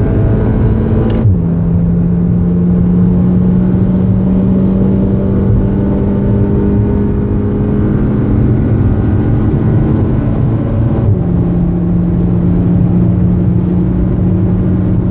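A car engine roars steadily at high speed, dropping in pitch with gear shifts.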